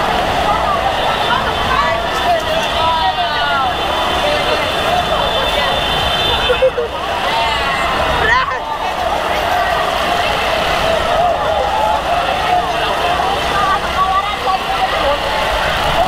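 Motorbike engines idle and rev nearby.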